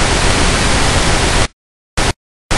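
Loud static hisses in harsh bursts.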